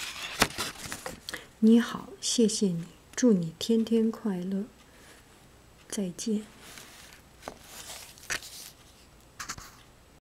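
A paper card rustles and crinkles as a hand handles it.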